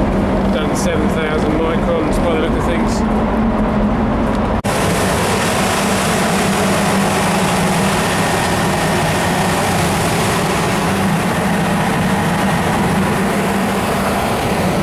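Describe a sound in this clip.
A compressor motor hums steadily nearby.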